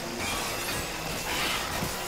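Sparks crackle against a metal wall.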